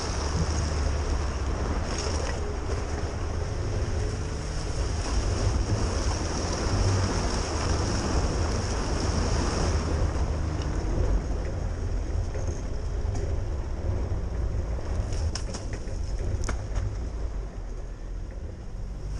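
Tyres splash and squelch through mud and puddles.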